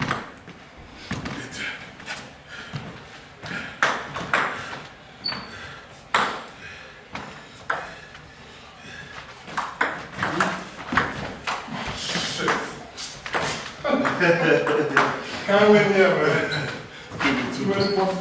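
A ping-pong ball clicks back and forth off paddles and a table in an echoing hall.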